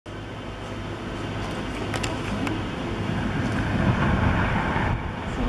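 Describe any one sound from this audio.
Wind blows steadily outdoors, rumbling and gusting.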